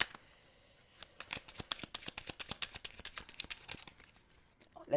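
Playing cards shuffle with quick soft flicks and taps.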